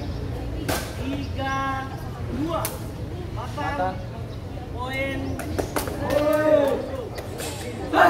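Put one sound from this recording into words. Young men shout calls to each other on the court.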